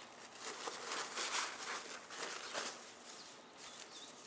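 Paper crinkles and rustles as hands smooth it flat.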